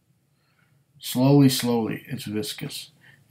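A middle-aged man speaks close to the microphone in a calm voice.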